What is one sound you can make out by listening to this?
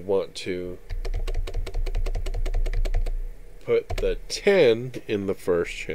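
Keys click on a keyboard.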